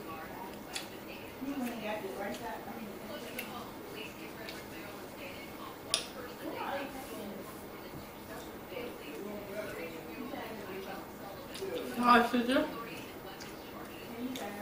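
Shells crack and crunch as a woman peels seafood.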